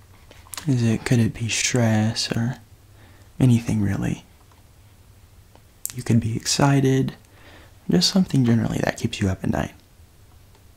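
A young man speaks softly close to a microphone.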